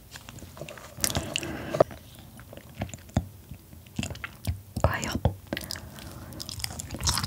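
Wet food squelches and crackles as a young woman eats close to a microphone.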